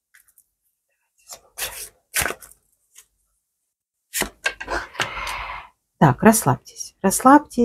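Playing cards slide and tap softly on a cloth-covered table.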